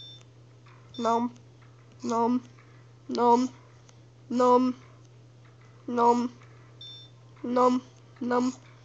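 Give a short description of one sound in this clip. Short bouncy game blips repeat at a steady pace.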